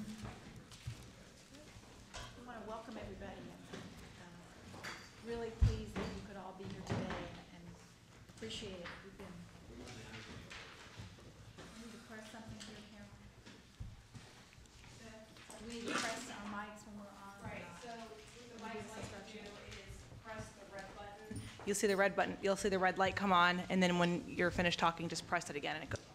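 A middle-aged woman speaks calmly into a microphone in a large room.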